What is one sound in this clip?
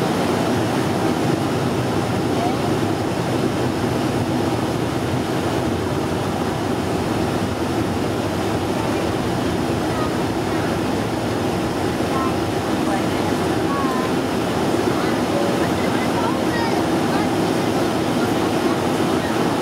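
Jet engines roar steadily as an airliner taxis.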